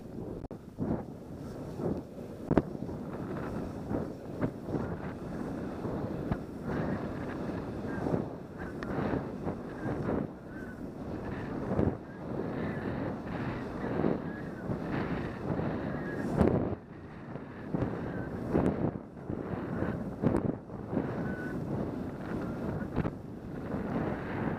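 Wind rushes past.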